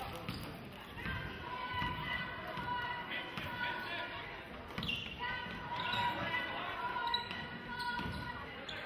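Sneakers squeak sharply on a court in a large echoing gym.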